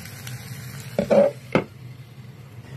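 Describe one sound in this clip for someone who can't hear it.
A metal lid clanks down onto a griddle.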